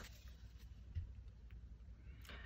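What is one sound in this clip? A hand presses a card down on a cloth.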